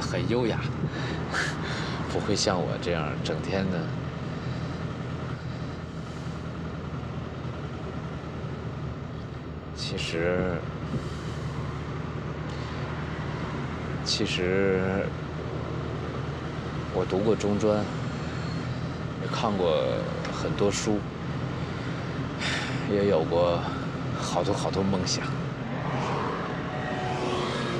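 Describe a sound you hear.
A man speaks cheerfully close by.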